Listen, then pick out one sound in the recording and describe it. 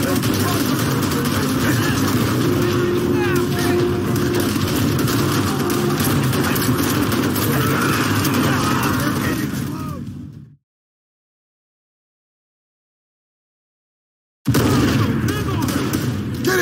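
A loud battle rumbles with gunfire and explosions.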